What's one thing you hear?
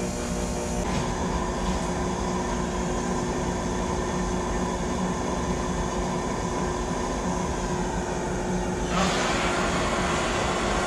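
Gas hisses steadily from a torch burner.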